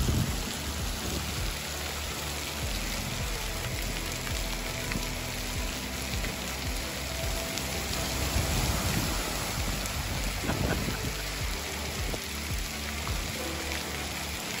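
Bare feet slap and splash through shallow water.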